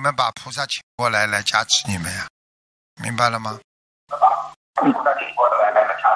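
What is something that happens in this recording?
An older man speaks cheerfully into a microphone, heard through a loudspeaker.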